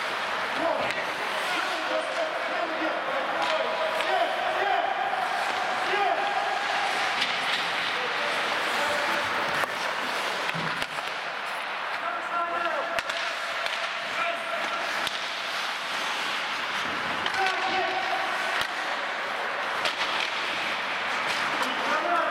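Men shout and call out across the rink.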